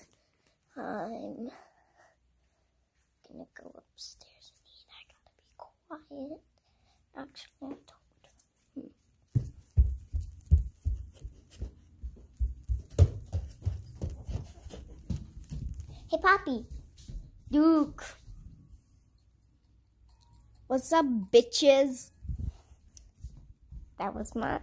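A young girl talks close to a phone microphone, in short bursts.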